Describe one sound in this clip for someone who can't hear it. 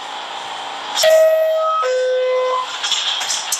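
A two-tone chime sounds as train doors close.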